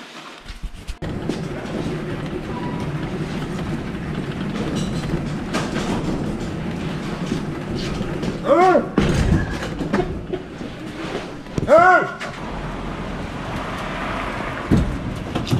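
A loaded trolley rolls along with a steady rumble.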